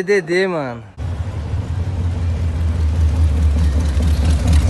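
A hot rod engine rumbles loudly as the car drives past.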